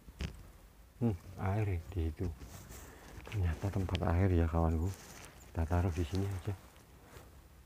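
A caged dove coos close by.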